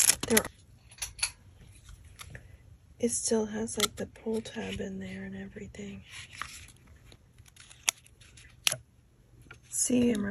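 A cardboard box flap scrapes and taps as it is handled.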